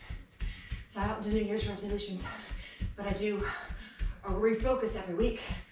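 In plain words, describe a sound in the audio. A woman talks with animation, breathing hard, close by.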